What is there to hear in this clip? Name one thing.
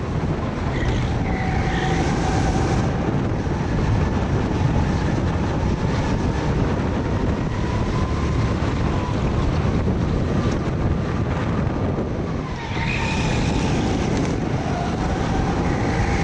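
Other go-kart engines whine nearby, rising and falling in pitch.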